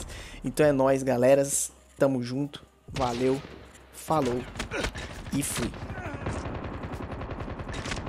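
Sniper rifle shots crack out.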